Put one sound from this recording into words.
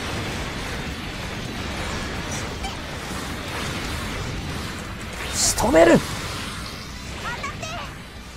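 Energy blasts and explosions rumble and crash.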